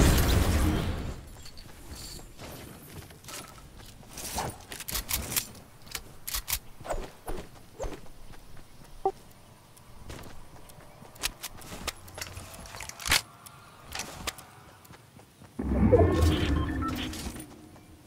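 Short clicks and clatters sound as items are picked up.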